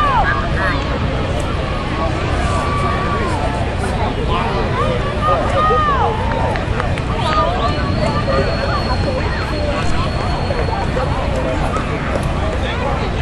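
A crowd of men, women and children cheers and shouts loudly outdoors.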